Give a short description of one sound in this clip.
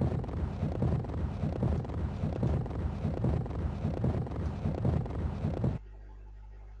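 A large snowball rolls and crunches over snow.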